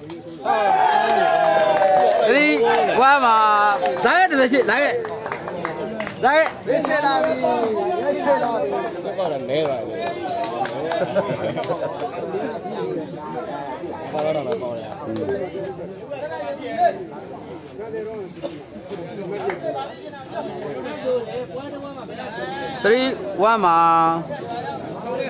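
Men shout loudly nearby.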